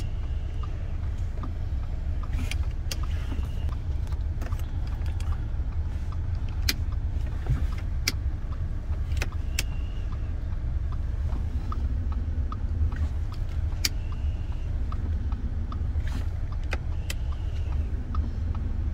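A gasoline car engine idles, heard from inside the car.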